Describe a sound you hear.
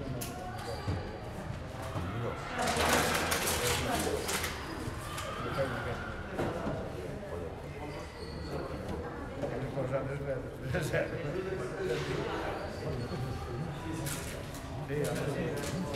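Several men and women talk at a distance in a large echoing hall.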